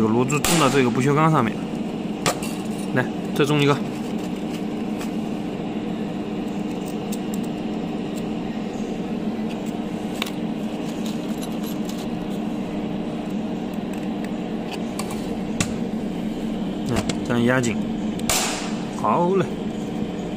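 A stud welding gun fires with a sharp crack.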